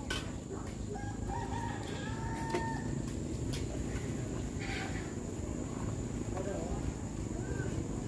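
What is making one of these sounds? A small child babbles in a high voice nearby.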